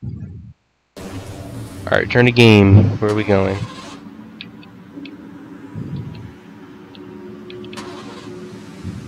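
A car engine idles with a low, steady rumble.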